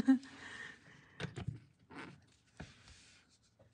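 A small plastic box clicks and rattles in a hand.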